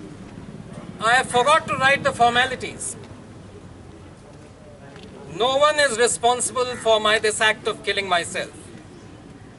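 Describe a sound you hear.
A man speaks loudly and expressively in short bursts, outdoors.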